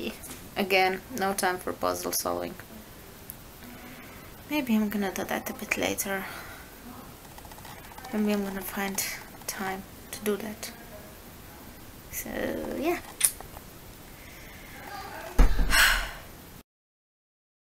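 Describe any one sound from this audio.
A woman talks calmly and close to the microphone.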